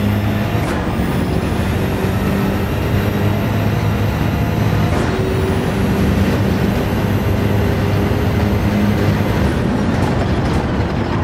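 A racing car engine roars at high revs, climbing steadily.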